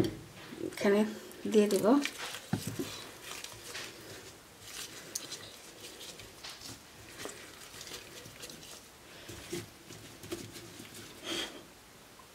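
Gloved hands rub and squelch against raw poultry skin.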